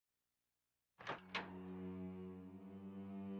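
A wooden door creaks slowly open with a low groan.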